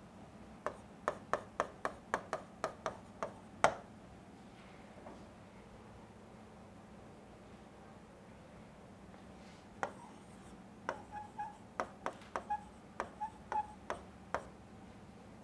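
A marker taps and squeaks sharply against a board.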